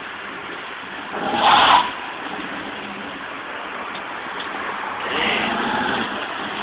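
Tyres hiss and skid on ice.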